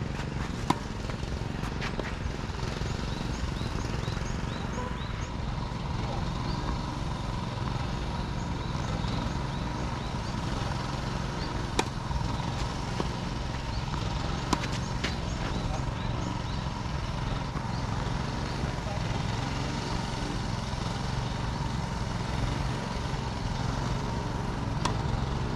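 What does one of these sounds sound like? A tennis ball is struck with rackets, with a hollow pop.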